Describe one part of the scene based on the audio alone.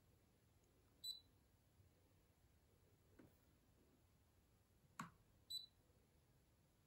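An electronic machine beeps briefly twice.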